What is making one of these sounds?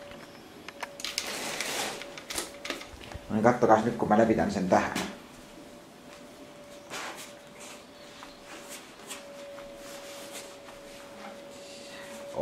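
A stiff paper sheet rustles and crackles as hands unroll it.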